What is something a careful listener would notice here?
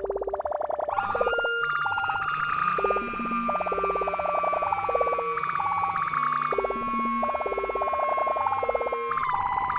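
A synthesizer chord swells in and holds, slowly fading.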